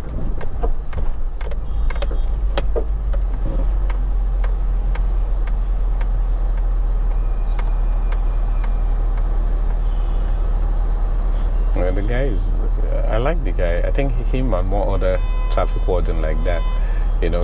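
A car engine rumbles low and steadily.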